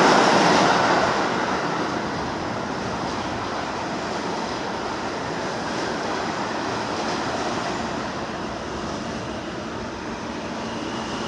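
A subway train rolls into the station on the near track, its wheels clattering and squealing.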